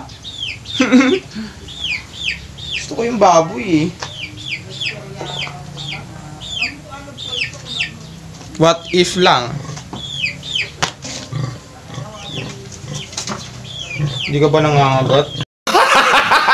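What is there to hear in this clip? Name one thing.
Pigs squeal repeatedly.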